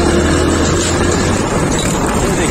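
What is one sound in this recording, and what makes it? A tractor engine chugs close by.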